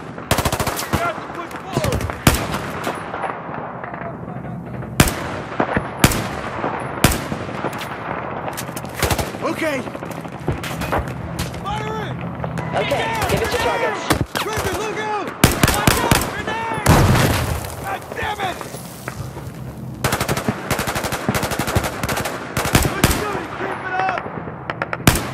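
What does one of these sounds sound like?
Rifle shots ring out sharply, one at a time, with echoing cracks.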